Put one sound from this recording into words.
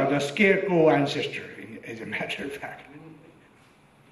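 An elderly man laughs into a microphone.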